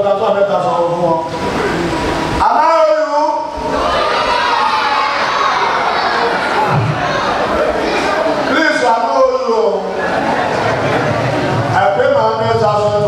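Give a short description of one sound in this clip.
A man preaches loudly and with passion through a microphone in a large echoing hall.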